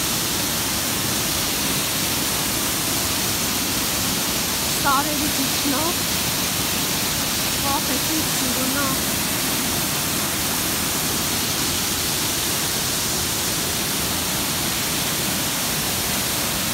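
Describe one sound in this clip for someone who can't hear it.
A waterfall roars steadily, splashing into a pool.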